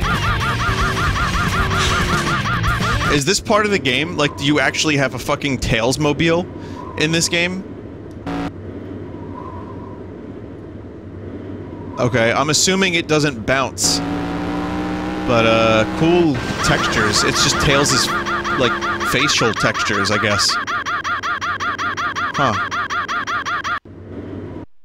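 A racing vehicle's engine hums and whines steadily.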